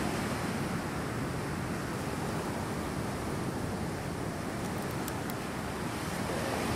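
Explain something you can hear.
Waves wash onto a beach nearby.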